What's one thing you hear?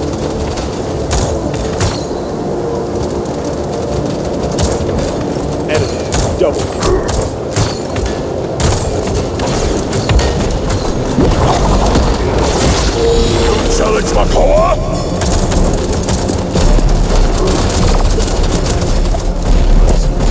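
Video game gunshots fire in quick bursts.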